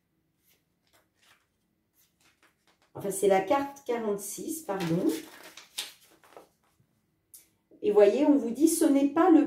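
Playing cards riffle and slap softly as they are shuffled by hand.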